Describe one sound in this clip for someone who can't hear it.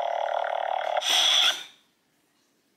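A toy lightsaber powers down with a short, loud whoosh.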